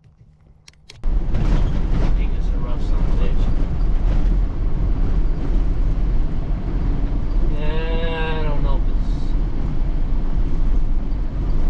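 A vehicle rumbles loudly along a dirt road.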